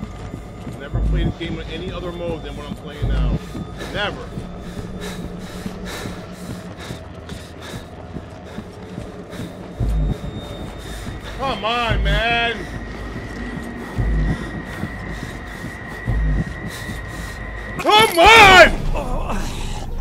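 A man talks and exclaims close to a microphone.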